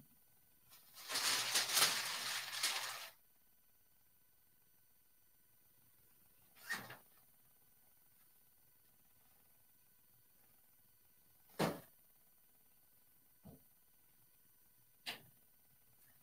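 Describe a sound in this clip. Plastic film rustles and crinkles.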